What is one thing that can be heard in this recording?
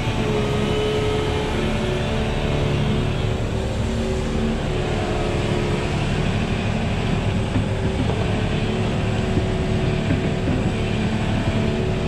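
An excavator's diesel engine rumbles and whines steadily close by.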